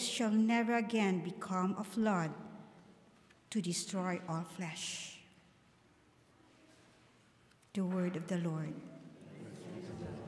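A young woman reads aloud calmly into a microphone in an echoing room.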